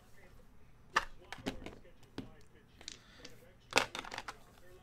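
Dice clatter as they are rolled onto a table.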